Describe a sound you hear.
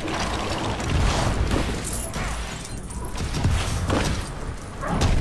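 Heavy crashing thuds boom again and again.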